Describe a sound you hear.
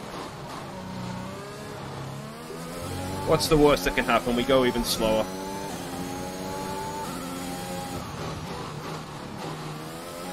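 A racing car engine whines and revs as gears shift.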